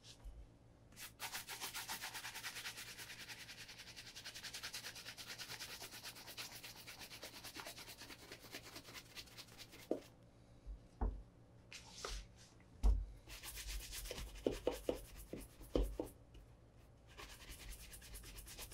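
A brush scrubs briskly against a leather shoe.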